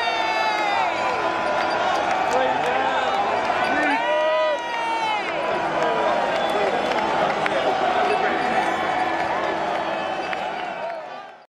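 Men and women in a crowd sing and chant together.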